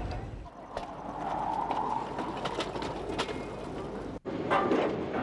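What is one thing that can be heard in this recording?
A loaded metal cart rattles and clanks as its wheels roll along railway tracks.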